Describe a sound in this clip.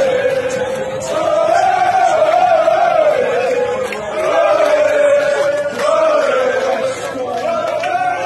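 A crowd claps along.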